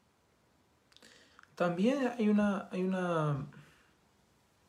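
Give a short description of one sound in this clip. A young man speaks briefly and calmly close to a microphone.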